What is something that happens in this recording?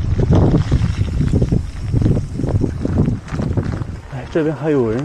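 Wind buffets loudly as a bicycle rides along.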